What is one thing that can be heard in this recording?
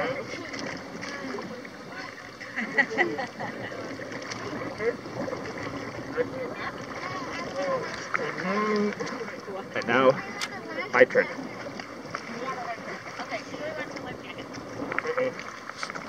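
Water splashes around swimmers.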